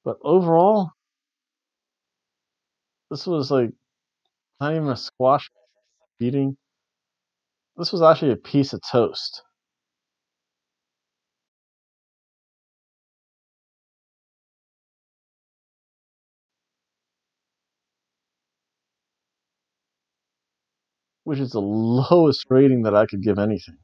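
A man reads aloud close by, in short phrases with pauses.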